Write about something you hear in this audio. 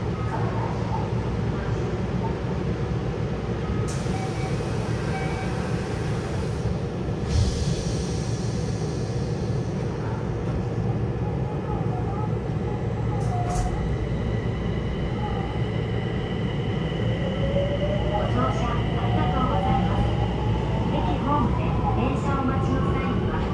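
A train car rumbles steadily.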